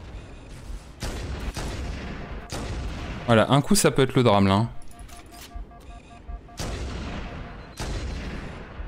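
Rifle shots boom, each with a long echoing tail.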